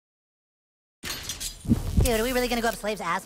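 A magical burst whooshes and shimmers.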